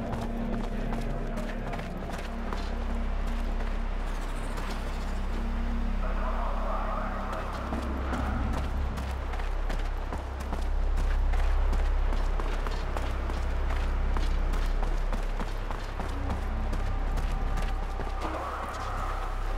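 Footsteps tread on a hard floor.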